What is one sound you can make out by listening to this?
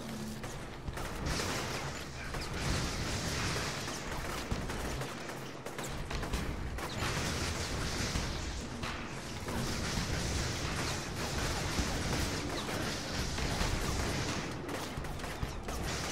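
Crackling energy blasts and rushing noise rumble on and on.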